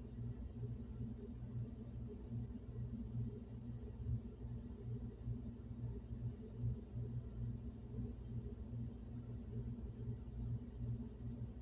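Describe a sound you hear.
A floor vent hums and rumbles low and steady with air blowing through it.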